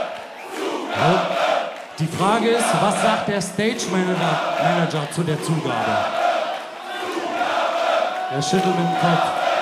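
A man shouts into a microphone over loudspeakers.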